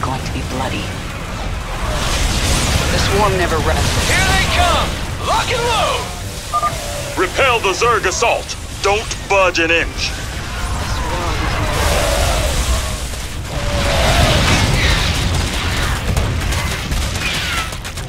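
Explosions boom now and then.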